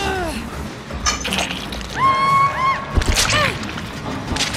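A woman screams in pain.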